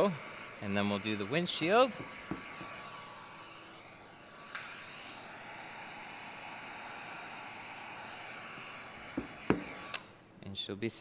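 A heat gun blows with a steady roaring hiss.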